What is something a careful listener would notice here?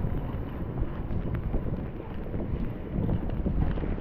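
A bicycle rolls by on wet pavement.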